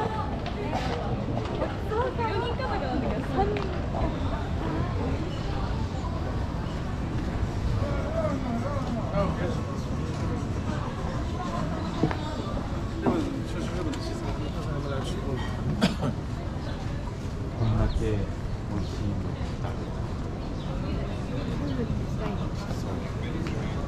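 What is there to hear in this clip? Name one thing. Footsteps tap on a paved street.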